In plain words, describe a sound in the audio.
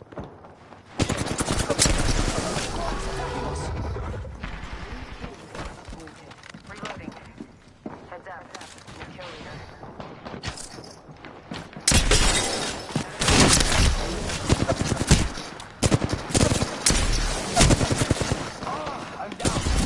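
Rapid gunfire crackles and booms in bursts.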